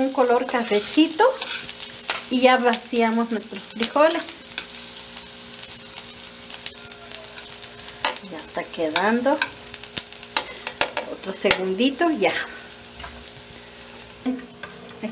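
Onions sizzle softly in hot oil.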